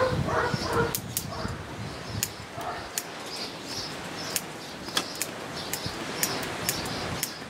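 Small shears snip twigs with sharp clicks.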